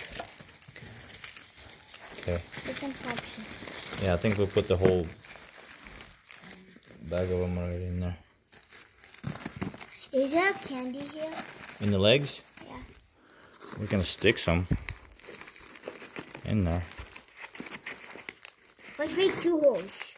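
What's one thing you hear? Paper crinkles and rustles.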